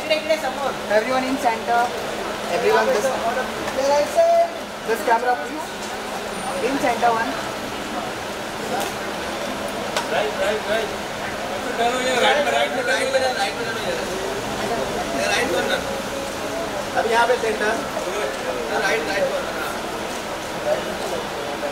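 Several men call out and chatter nearby in a lively crowd.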